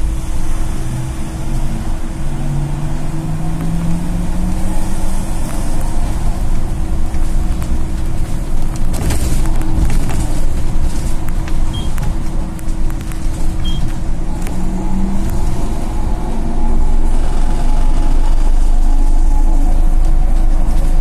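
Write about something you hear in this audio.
A bus engine hums and whines steadily as it drives along.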